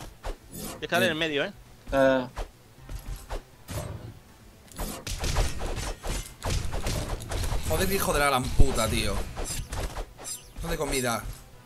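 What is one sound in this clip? Game combat sounds clash and thump with quick hits.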